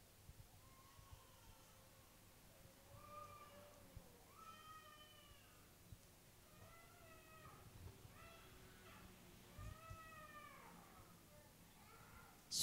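A woman speaks softly and haltingly into a microphone.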